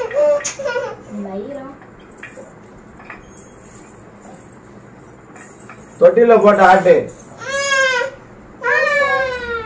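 A baby cries loudly nearby, in short bursts.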